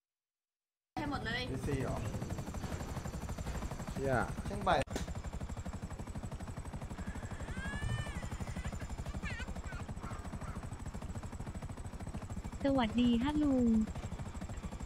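A helicopter engine drones steadily with whirring rotor blades.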